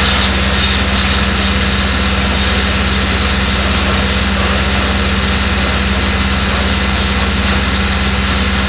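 A combine harvester's engine runs with a loud, steady drone and whine up close.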